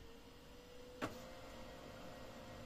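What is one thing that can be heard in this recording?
A printer motor hums steadily.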